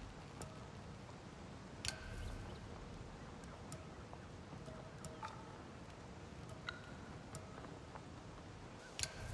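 Soft menu blips and clicks sound now and then.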